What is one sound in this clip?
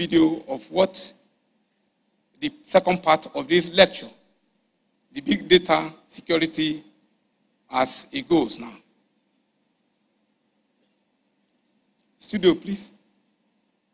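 An elderly man speaks slowly and formally through a microphone, with long pauses.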